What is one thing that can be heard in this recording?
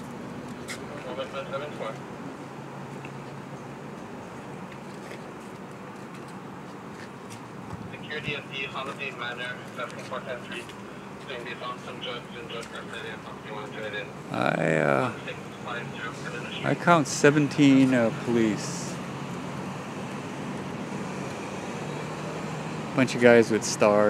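Men talk loudly nearby outdoors.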